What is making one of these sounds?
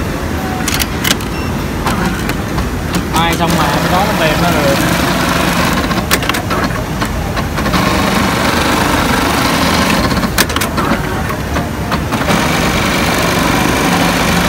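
A sewing machine hums and whirs steadily nearby.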